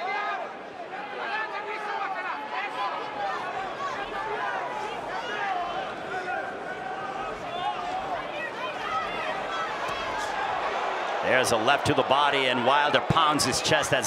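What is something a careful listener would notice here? Boxing gloves thud against each other as punches land.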